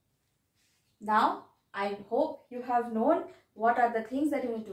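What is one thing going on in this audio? A young woman speaks clearly and calmly close to a microphone.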